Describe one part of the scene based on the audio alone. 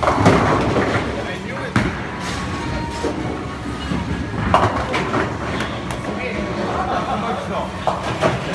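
Bowling pins clatter in other lanes across a large echoing hall.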